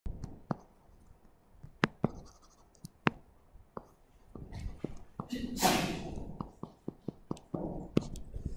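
A stylus taps and scratches on a hard tablet surface.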